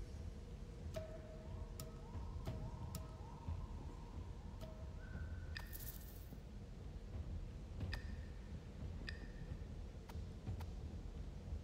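Short electronic clicks and soft chimes sound as menu items are selected.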